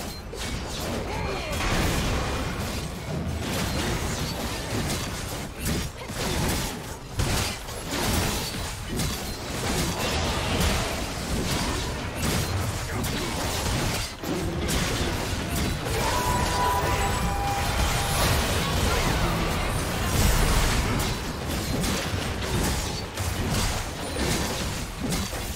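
Game spell effects whoosh, zap and crash in a busy fight.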